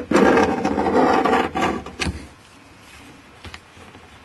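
A small blade scrapes along a wooden seam.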